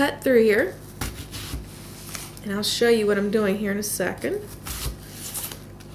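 A knife cuts through an onion and taps on a wooden board.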